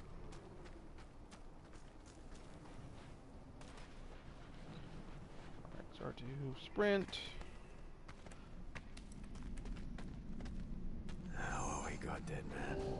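Footsteps crunch quickly on sand and gravel.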